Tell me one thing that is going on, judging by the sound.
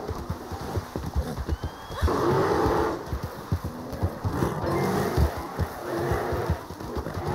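A horse gallops, its hooves thudding on the ground.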